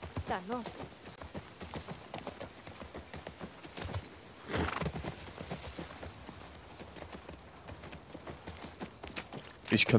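A horse's hooves thud steadily on grass and pavement.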